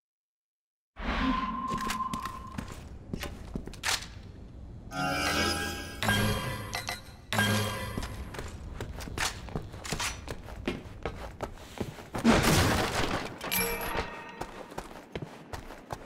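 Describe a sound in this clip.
Footsteps walk across a hard, gritty floor.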